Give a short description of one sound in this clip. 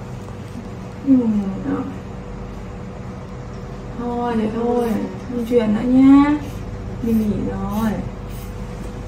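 A young woman speaks softly in a high, coaxing voice close by.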